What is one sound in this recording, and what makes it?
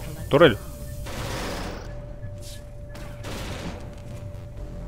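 An energy beam whooshes and hums.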